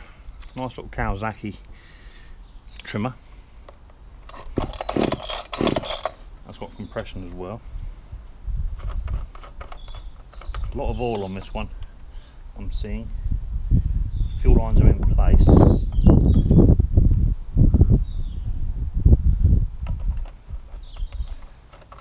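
Plastic tool parts knock and rattle as a hedge trimmer is handled.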